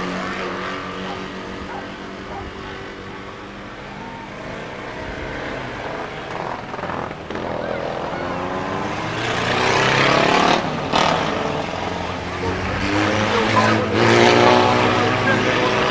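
Several car engines roar and rev as cars race around a track.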